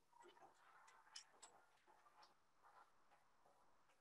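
A woman speaks with animation into a handheld microphone.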